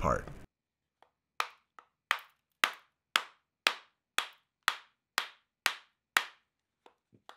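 A hammer taps steadily on a hard plaster shell.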